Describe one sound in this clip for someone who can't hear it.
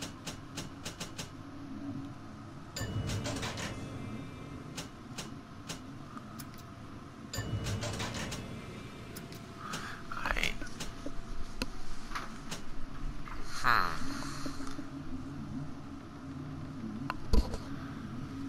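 Game menu selections click and chime.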